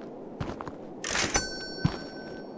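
A cardboard box thuds into a metal bin.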